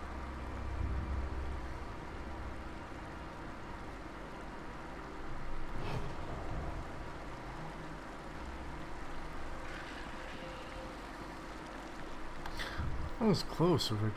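A man talks calmly close to a microphone.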